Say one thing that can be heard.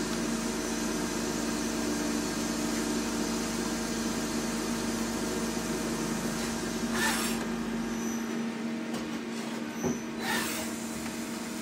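A machine hums steadily with a low whirring drone.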